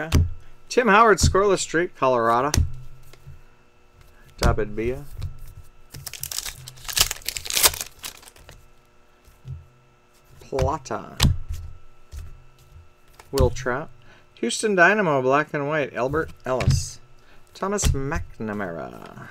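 Trading cards slide and flick against each other in hand.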